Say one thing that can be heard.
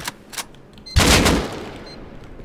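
A gun fires a single loud shot that rings out.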